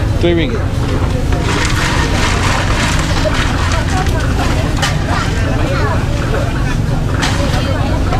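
Ice clinks as a woman stirs a drink in a large jar.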